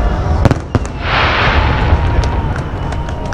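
Fireworks crackle and fizz.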